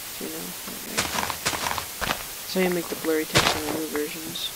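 Plant stalks break with short crunching pops.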